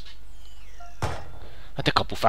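A football is struck hard with a thump.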